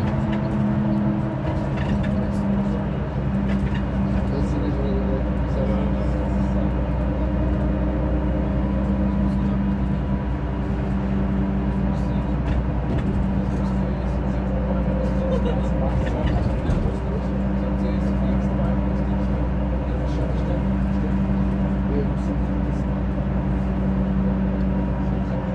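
A train rumbles and hums steadily as it rolls along the tracks.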